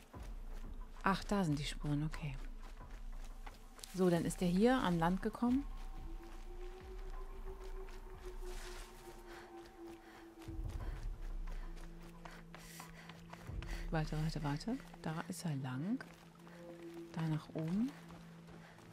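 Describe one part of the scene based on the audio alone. A young woman talks calmly close to a microphone, in short bursts.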